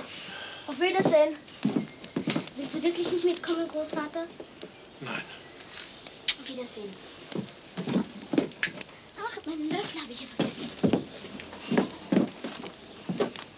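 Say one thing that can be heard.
A boy speaks nearby.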